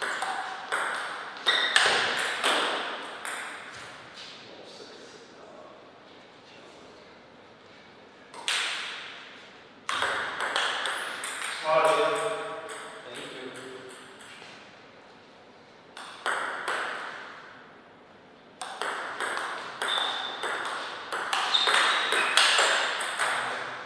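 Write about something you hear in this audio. A ping pong ball clicks quickly back and forth off paddles and a table in an echoing hall.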